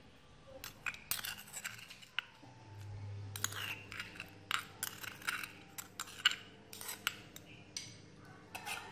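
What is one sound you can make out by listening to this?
A metal spoon scrapes and clinks against a stone mortar.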